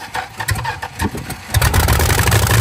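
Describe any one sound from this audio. An old car engine cranks and sputters to life.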